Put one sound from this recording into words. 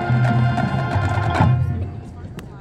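A marching band plays loud brass chords outdoors.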